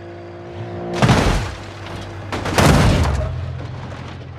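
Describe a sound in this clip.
Cars crash together with a loud smashing of metal.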